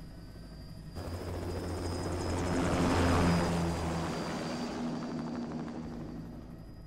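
A helicopter's rotors roar and swell as it lifts off.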